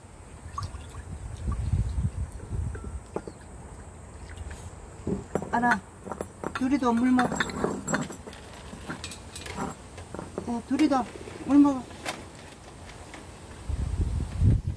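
Puppies lap and chew food from bowls close by.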